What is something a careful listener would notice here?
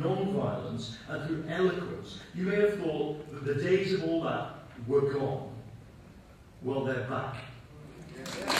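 A middle-aged man speaks forcefully through a microphone in a large hall.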